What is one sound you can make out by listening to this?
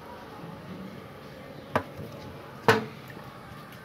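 A spoon clinks against ceramic dishes.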